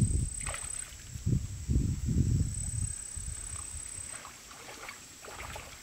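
Feet slosh through shallow water.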